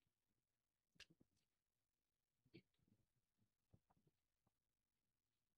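Footsteps tap on a pavement nearby.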